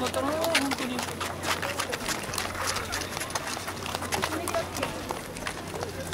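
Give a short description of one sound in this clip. Footsteps patter on pavement as a group walks.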